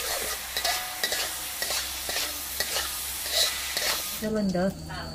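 Food sizzles and crackles while frying in a pan.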